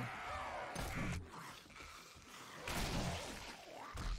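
A heavy club thuds into a body with dull blows.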